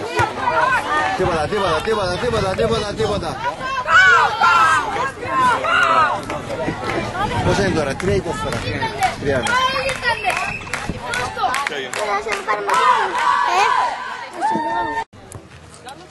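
A crowd of spectators chatters and calls out close by.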